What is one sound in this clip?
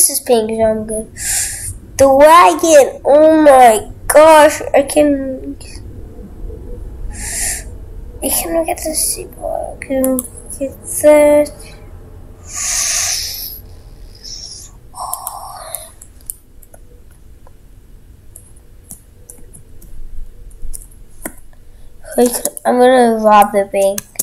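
A young boy talks with animation close to a microphone.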